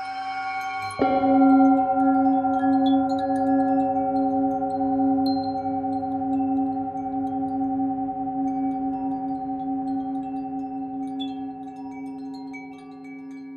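A singing bowl is struck and rings out.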